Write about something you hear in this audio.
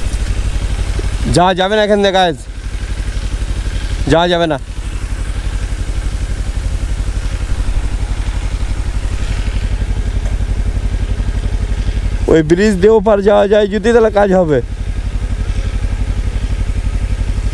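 A motorcycle engine putters steadily at low speed.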